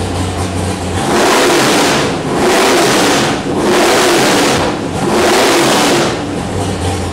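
A loud V8 engine revs hard in three sharp roaring bursts.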